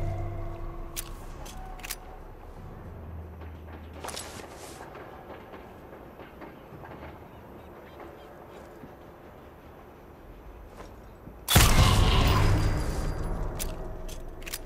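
A pistol is reloaded with sharp metallic clicks.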